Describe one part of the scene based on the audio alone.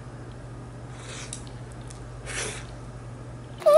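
A young woman slurps noodles loudly, close up.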